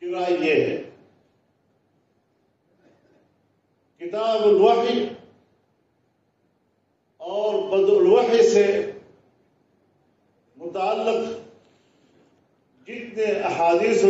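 An elderly man speaks slowly and solemnly into a microphone, in short phrases with pauses.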